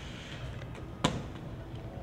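A skateboard lands with a sharp clack on pavement.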